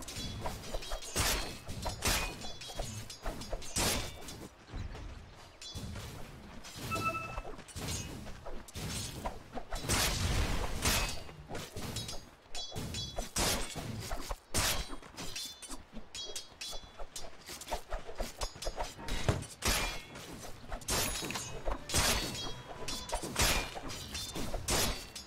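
Game spell effects and weapon hits clash and crackle in quick bursts.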